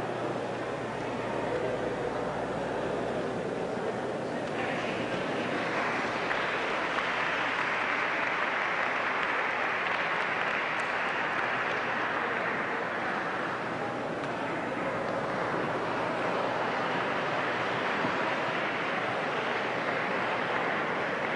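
A large crowd chatters loudly in an echoing hall.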